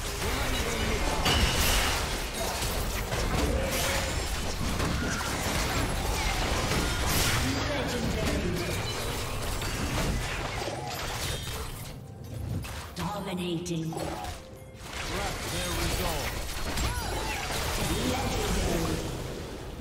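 Weapons clash and strike during a video game fight.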